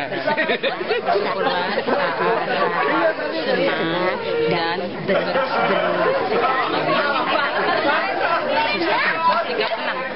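An elderly woman speaks softly up close.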